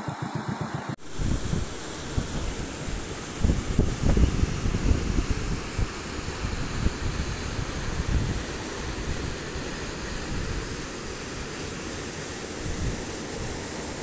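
Floodwater rushes and roars loudly nearby.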